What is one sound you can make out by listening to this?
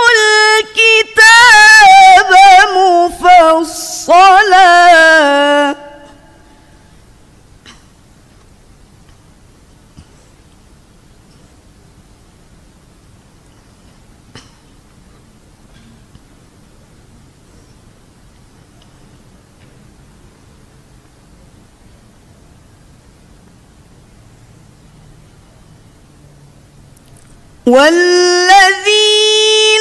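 A woman chants melodically into a microphone, with long held notes and pauses.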